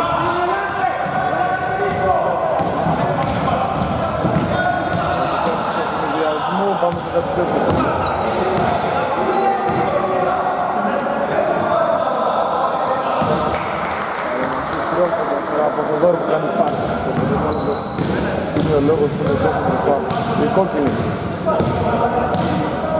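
Men shout and call out to each other across an echoing hall.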